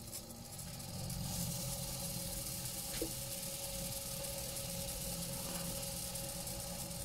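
Sandpaper rasps against spinning wood.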